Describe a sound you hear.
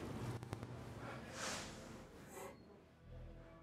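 A man asks a question.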